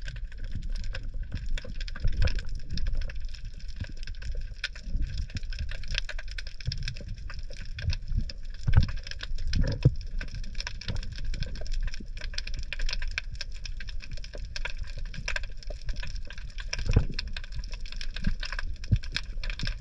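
Water rushes and thumps in muffled bursts as a swimmer moves underwater.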